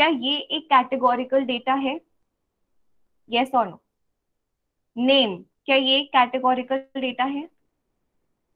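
A young woman speaks calmly over an online call.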